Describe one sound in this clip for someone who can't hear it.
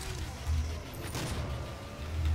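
A shotgun fires with a loud boom.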